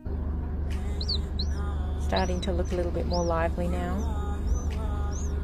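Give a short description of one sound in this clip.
A small bird chick peeps with short high chirps.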